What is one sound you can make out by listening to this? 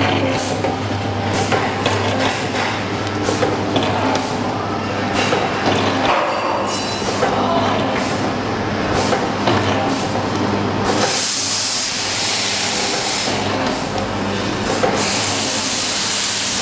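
A packaging machine clicks and clacks in a regular rhythm.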